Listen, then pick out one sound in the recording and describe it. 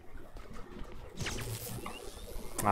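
A stun gun fires with a crackling snap.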